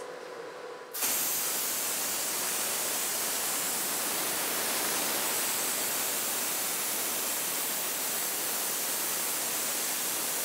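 A plasma torch cuts through steel with a loud, steady hiss.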